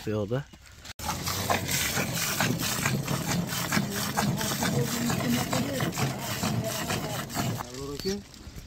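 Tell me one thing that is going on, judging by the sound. Milk streams hissing into a full pail.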